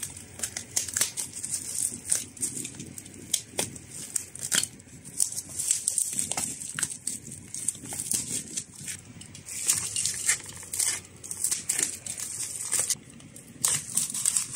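Bubble wrap crinkles and rustles as hands handle it.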